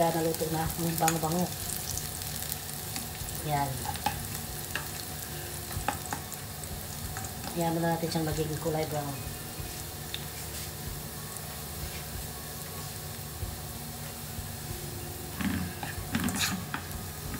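Food sizzles in a pan.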